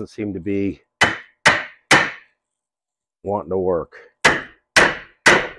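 Metal knocks sharply against metal, with a short ring after each blow.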